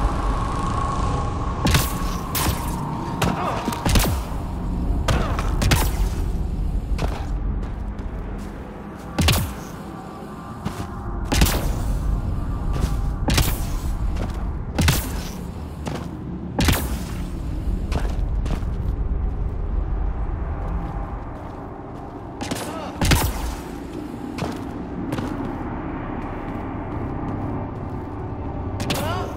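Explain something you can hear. Heavy footsteps crunch quickly over rock and gravel.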